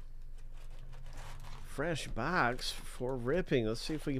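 Foil card packs rustle as hands handle them.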